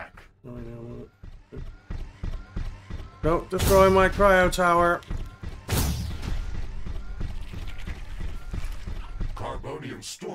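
Explosions boom and crackle in a video game battle.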